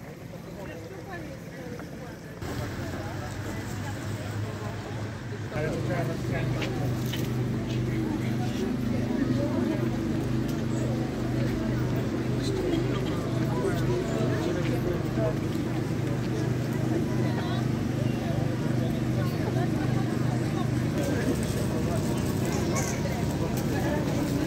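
A crowd of adults chatters.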